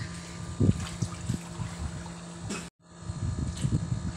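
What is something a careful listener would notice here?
Water sloshes as a child wades through a pool.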